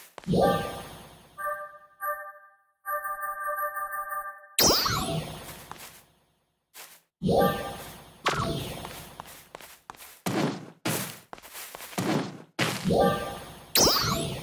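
Short menu clicks and chimes sound now and then.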